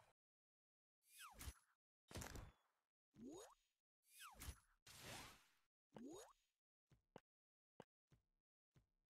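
Colored blocks pop and burst in quick bursts, each with a rising swoosh.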